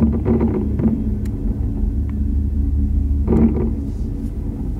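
Fireworks burst with booming bangs that echo across open water.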